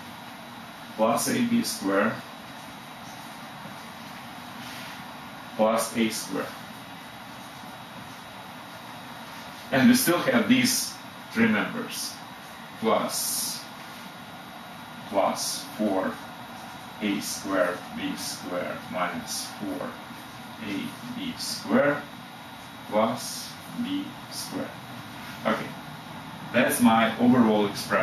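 A middle-aged man speaks calmly, explaining in short bursts with pauses, close by.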